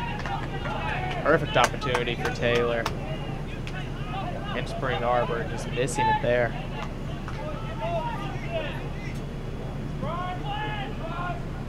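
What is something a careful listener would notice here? Young men shout to each other across an outdoor playing field.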